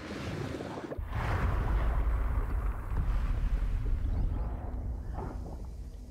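A deep magical whoosh swells and rumbles.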